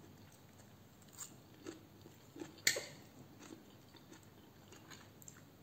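A woman chews crunchy arugula leaves close up.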